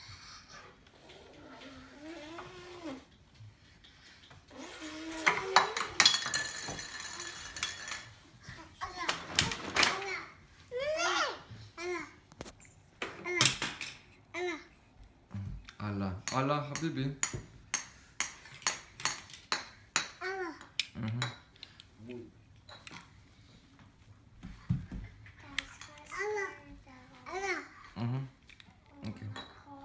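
A toddler babbles and squeals excitedly close by.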